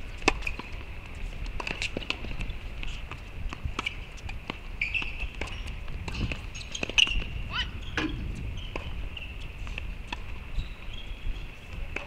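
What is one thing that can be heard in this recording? A tennis ball is struck with a racket.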